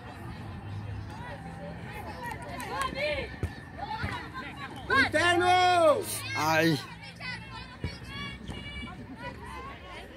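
Young women shout and cheer loudly close by, outdoors.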